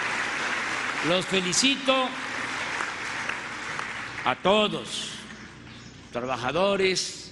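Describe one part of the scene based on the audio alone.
A man speaks through a loudspeaker, calmly and with emphasis.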